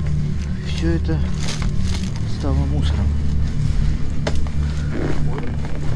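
Paper and cardboard rustle and crunch underfoot.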